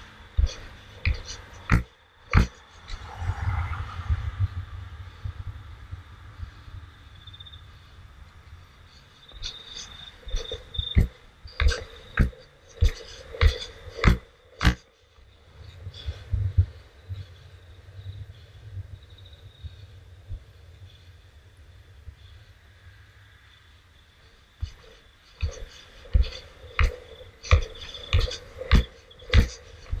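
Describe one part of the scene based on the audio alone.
Skateboard wheels clack sharply over cracks in the path.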